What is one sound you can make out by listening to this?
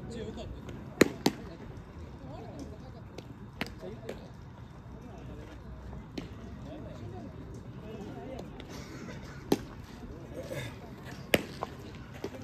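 A baseball smacks into a catcher's mitt with a sharp pop.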